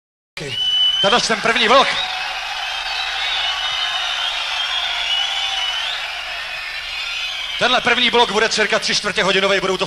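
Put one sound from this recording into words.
A band plays loud heavy rock through loudspeakers.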